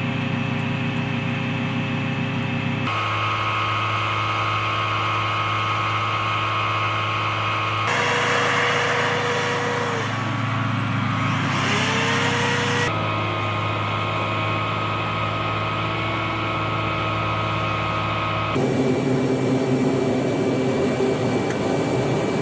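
Turboprop engines drone steadily with a high whine.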